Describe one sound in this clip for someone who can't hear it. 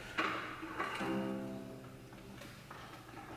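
A cello string is plucked.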